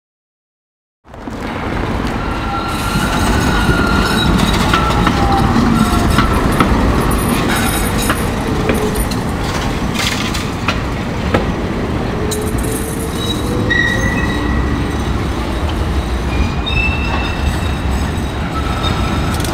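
A tram approaches and rolls into a stop with a rumbling, rattling noise.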